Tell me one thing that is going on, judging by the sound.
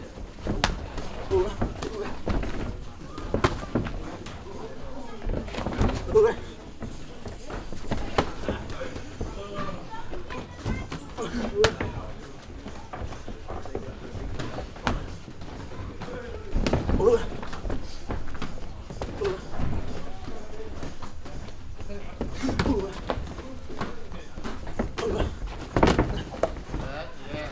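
A man calls out instructions between strikes.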